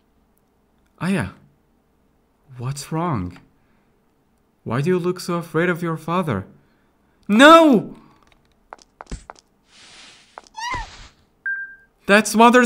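A young man talks and exclaims with animation into a close microphone.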